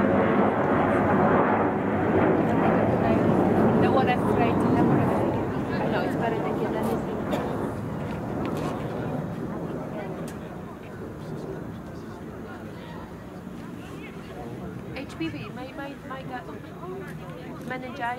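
Young players shout to each other in the distance outdoors.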